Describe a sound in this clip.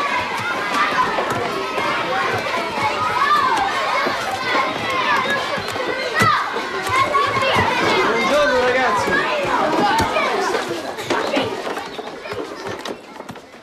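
Many children shout and chatter loudly in an echoing room.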